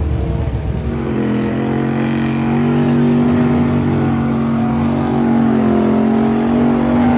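Truck engines idle with a steady, deep drone.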